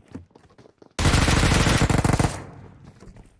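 Rapid gunfire rattles loudly in a burst.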